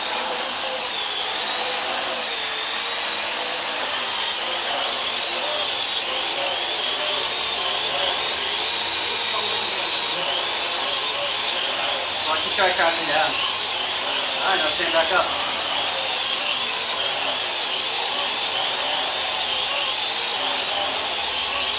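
A small quadcopter drone hovers with a high, wavering whine of its rotors.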